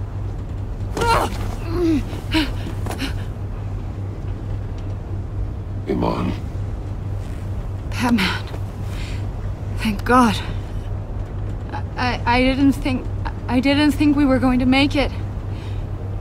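A young woman speaks haltingly in a weak, shaky voice close by.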